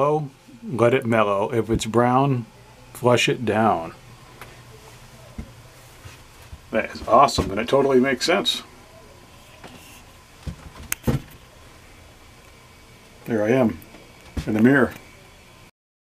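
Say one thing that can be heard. A man talks calmly close by, pausing between phrases.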